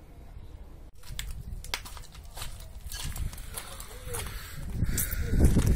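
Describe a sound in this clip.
A wet fishing net rustles and crackles close by.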